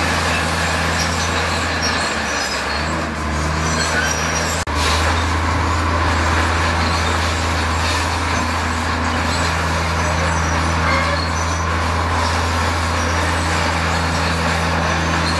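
A bulldozer engine rumbles steadily close by.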